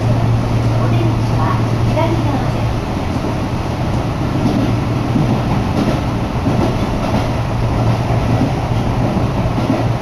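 A young man talks calmly and slightly muffled, close by.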